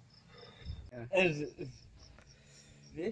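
A man speaks nearby with animation.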